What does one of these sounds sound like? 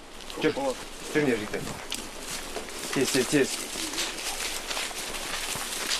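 Several men run through undergrowth, footsteps crunching.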